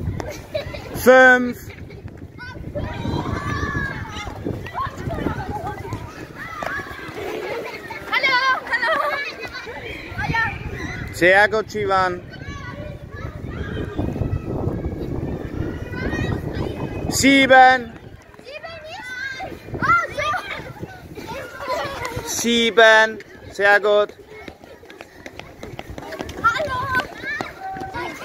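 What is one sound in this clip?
Children shout and call out with high voices outdoors.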